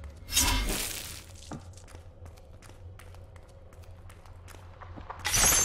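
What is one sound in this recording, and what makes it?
Sharp blows and knocks from a fight land in quick succession.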